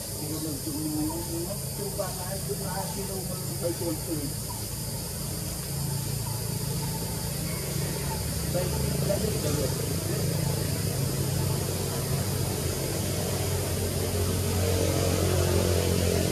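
Leaves rustle as a monkey moves through the branches.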